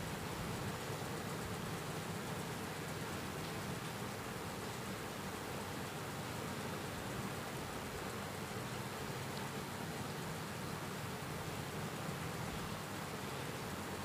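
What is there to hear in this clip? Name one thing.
An elderly man speaks calmly and steadily into a microphone.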